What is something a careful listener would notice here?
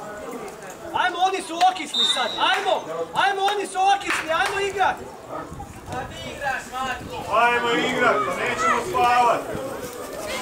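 Young players shout to each other across an open field, heard from a distance.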